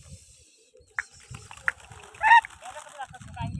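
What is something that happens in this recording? A flock of pigeons flaps its wings as it takes off.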